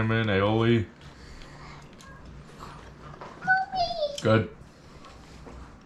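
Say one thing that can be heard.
A man chews and bites into food.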